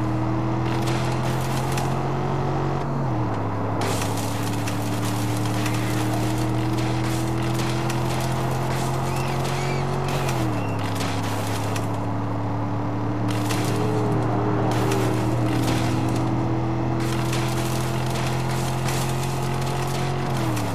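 Tyres rumble and rattle over a dirt track.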